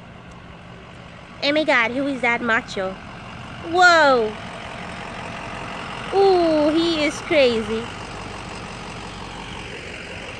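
A pickup truck's engine rumbles as the truck drives up close.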